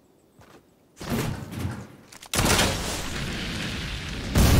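Gunshots fire rapidly and loudly.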